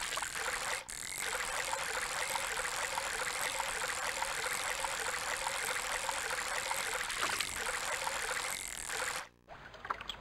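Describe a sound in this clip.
A fishing lure splashes and gurgles as it is pulled across the water.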